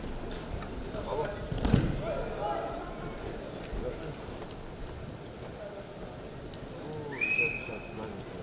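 Men's voices call out from the crowd.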